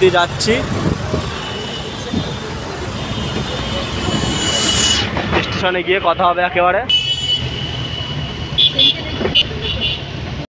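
Motorbike engines hum close by.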